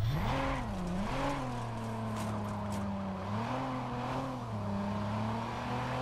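A car engine revs loudly and then drones steadily.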